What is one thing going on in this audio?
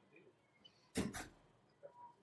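A lacrosse stick knocks sharply once as a ball is caught.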